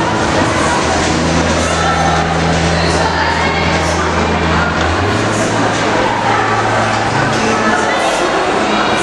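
An acoustic guitar is strummed through a loudspeaker.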